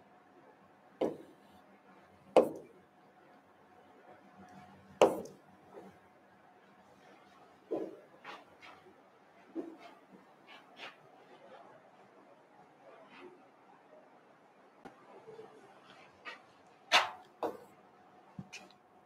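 A marker knocks and taps against a board.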